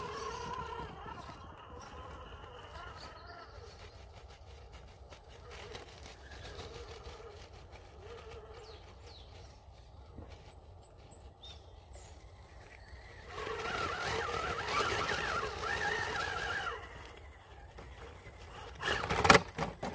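Rubber tyres scrape and grip on rough rock.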